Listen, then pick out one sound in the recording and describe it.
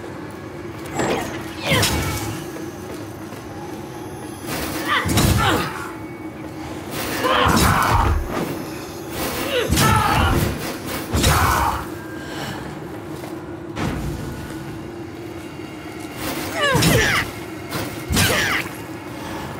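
Weapons clash and strike with heavy blows in a fight.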